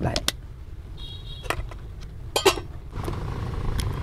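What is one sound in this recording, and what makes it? A metal pot lid clanks.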